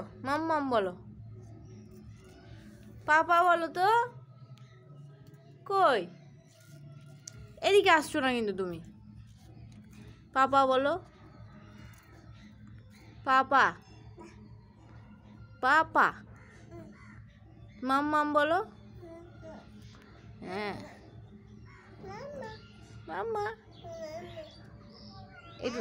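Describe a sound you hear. A toddler babbles and calls out in short, high bursts close by.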